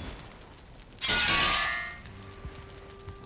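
A fire hisses and crackles in a brief loud burst.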